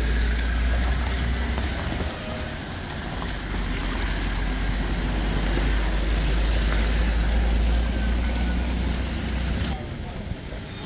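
Tyres splash slowly through muddy water.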